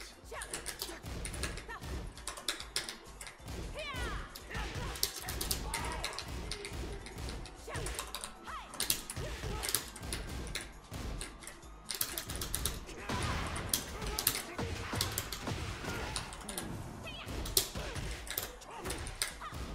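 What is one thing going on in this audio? Punches and kicks land with sharp video game hit effects.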